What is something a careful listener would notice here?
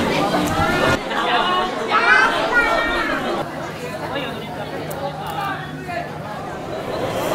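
A crowd of people chatters in a busy street.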